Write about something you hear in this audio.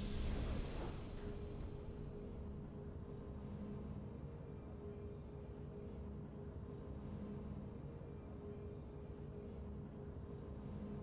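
Soft, low game music hums steadily.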